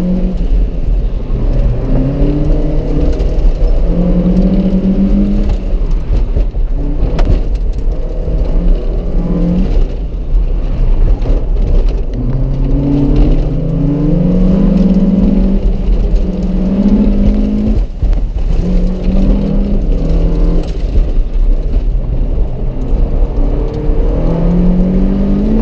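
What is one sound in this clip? Tyres squeal on the pavement through tight turns.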